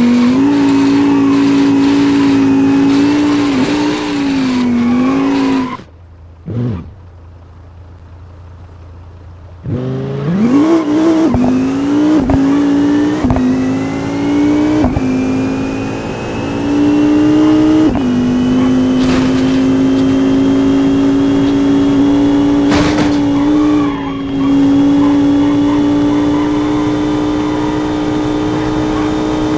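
A racing car engine roars at high revs, drops away, then climbs steadily through the gears.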